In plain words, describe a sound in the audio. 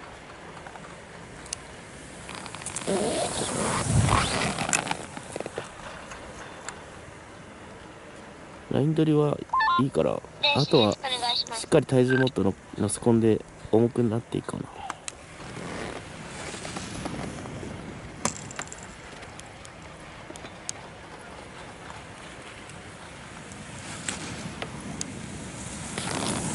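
Skis scrape and hiss across hard snow in quick turns.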